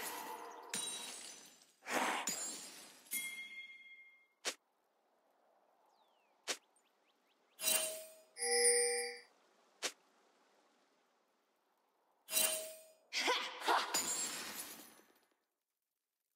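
Video game spell effects whoosh and crackle in bursts.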